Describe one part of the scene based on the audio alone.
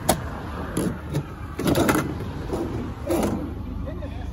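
A metal latch clanks against a steel door.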